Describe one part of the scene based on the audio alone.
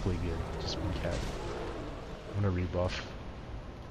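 A large beast lets out deep, rumbling roars.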